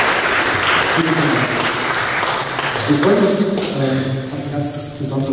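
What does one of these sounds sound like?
A band starts playing acoustic guitars and an accordion.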